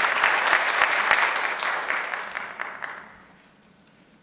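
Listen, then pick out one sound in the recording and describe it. An audience applauds loudly, then the applause dies away.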